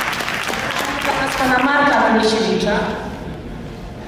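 A woman speaks through a microphone over loudspeakers in a large hall.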